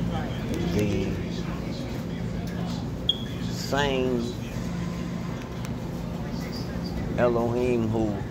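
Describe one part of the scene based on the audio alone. A book page flutters and rustles softly.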